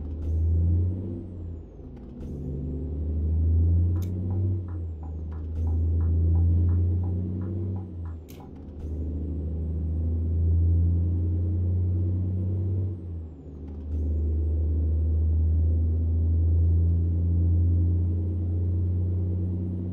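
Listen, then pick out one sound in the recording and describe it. A truck engine hums low and steady, dipping briefly now and then as gears change.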